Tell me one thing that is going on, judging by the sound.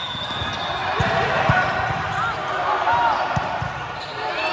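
A volleyball thuds off a player's hands.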